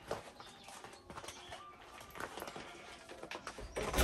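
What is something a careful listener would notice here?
A woman rummages in a leather purse.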